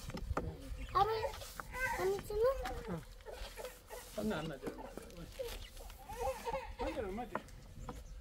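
A young girl talks animatedly nearby.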